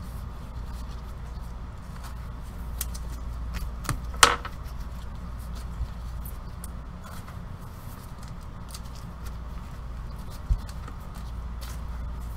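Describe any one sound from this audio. Foil card packs crinkle as they are torn open.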